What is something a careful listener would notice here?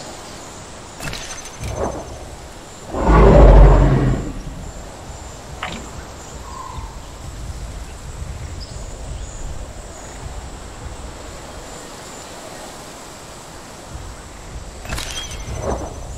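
Short electronic clicks sound as a menu opens and closes.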